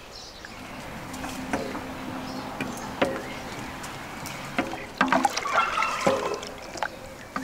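A wooden pole mashes and squelches pulp in a pot.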